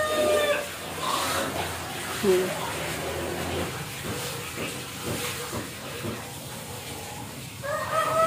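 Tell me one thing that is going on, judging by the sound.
Donuts sizzle as they fry in hot oil in a pan.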